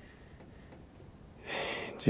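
Paper rustles as an envelope is handled.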